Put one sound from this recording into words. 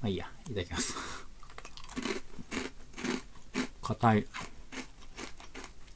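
A man crunches a crisp snack while chewing.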